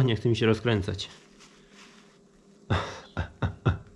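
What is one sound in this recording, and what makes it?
A cloth wipes and rubs against plastic.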